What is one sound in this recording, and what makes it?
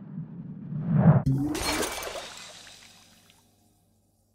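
A glass bowl smashes on the floor.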